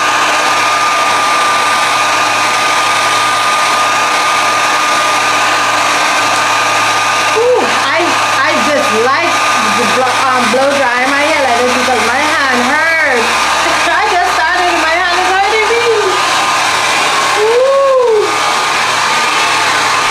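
A hair dryer blows loudly and steadily close by.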